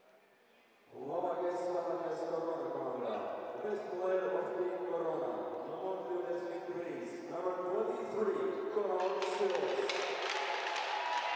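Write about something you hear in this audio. A woman sings through loudspeakers in a large echoing arena.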